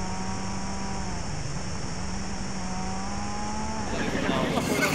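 A turbocharged four-cylinder rally car engine drones, heard from inside the cabin, its pitch rising and dropping between gears.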